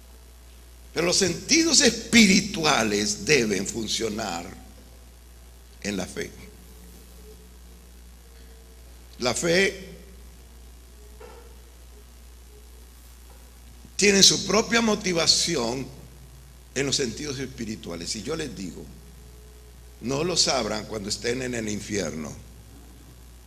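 An elderly man speaks with animation into a microphone, in bursts with pauses, heard through a loudspeaker in a room.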